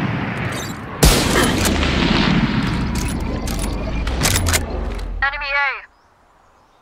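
A magical energy blast bursts with a loud crack and a rumbling whoosh.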